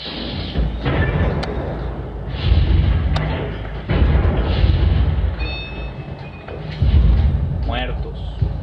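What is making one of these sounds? Gunshots boom and echo.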